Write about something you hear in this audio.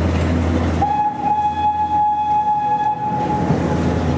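A tram's whistle sounds a long, steady toot.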